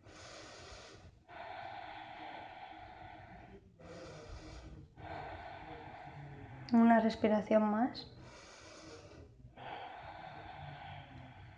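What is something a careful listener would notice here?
A young woman breathes in and out slowly and audibly.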